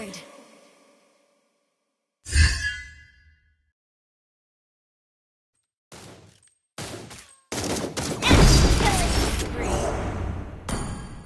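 Game sound effects whoosh and chime in bursts.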